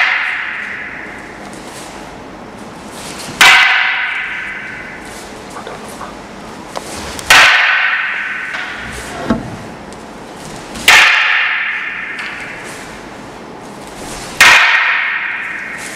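Wooden staffs clack sharply together, echoing loudly through a large hall.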